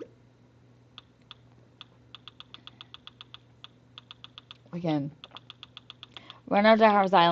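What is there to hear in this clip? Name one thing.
Quick soft ticks sound as a menu cursor scrolls through a list.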